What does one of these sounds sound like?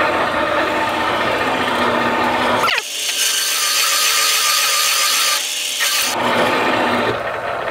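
A metal cutter grinds steadily against metal.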